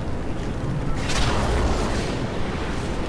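A sudden whoosh bursts out.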